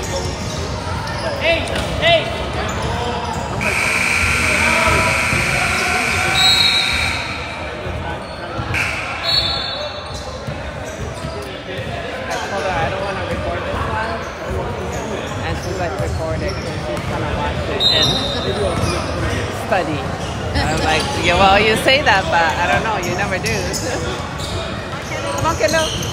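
Children call out and shout across the court.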